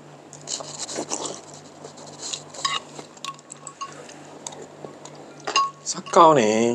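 A man slurps and chews food close by.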